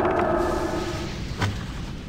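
A fiery spell bursts with a whoosh.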